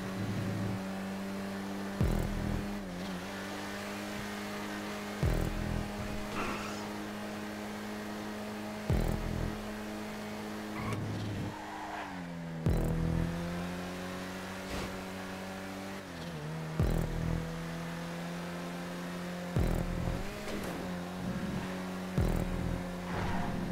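A car engine revs steadily, dropping briefly with each gear change.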